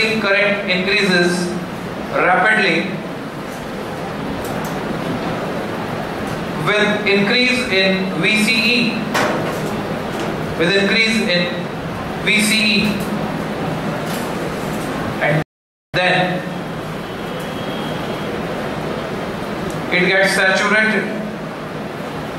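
A man speaks calmly in bursts, lecturing in a room with some echo.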